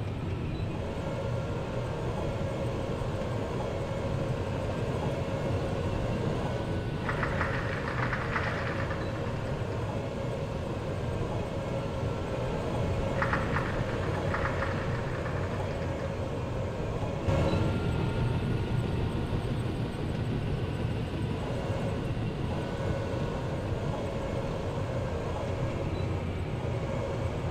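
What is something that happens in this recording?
Tank tracks clatter and squeak.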